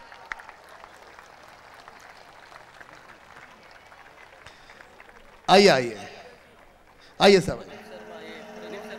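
A large crowd murmurs.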